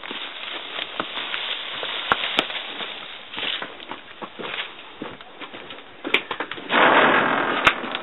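A pony's hooves clop on concrete.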